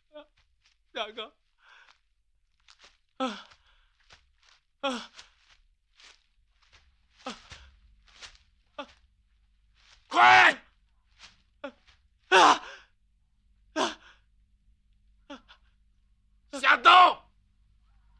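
A man groans and cries out in pain nearby.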